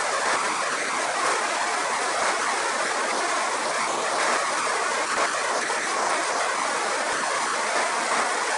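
A machine runs with a steady loud whir.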